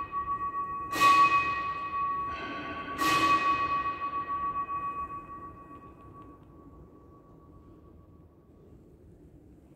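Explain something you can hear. Coins drop into a metal box with a bright ringing clang.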